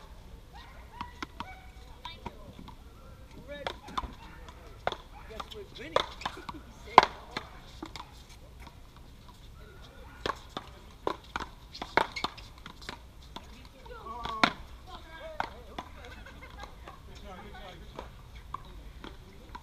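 Paddles smack a ball against a wall with sharp, echoing pops.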